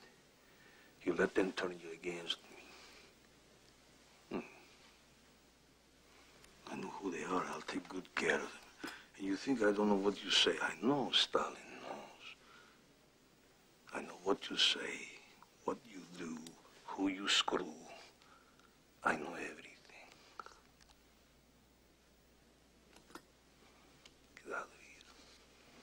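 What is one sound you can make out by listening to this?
An older man speaks slowly and firmly, close by.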